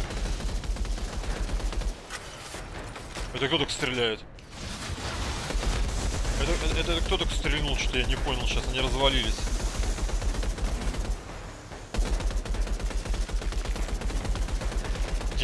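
A rifle fires in rapid bursts of shots.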